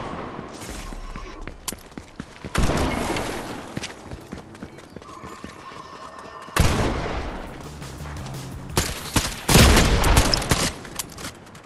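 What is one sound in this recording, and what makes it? A game character's footsteps patter quickly on grass and pavement.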